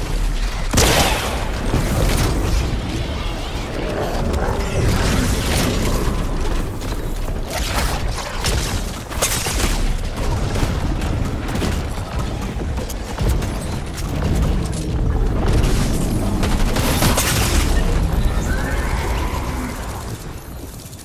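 Loud blasts and gunfire crash in quick bursts.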